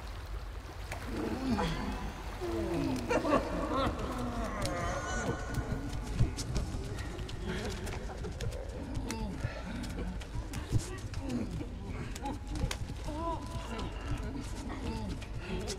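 A mass of bodies groans and moans.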